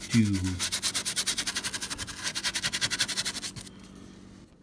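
A stiff brush scrapes rapidly back and forth over a rough surface.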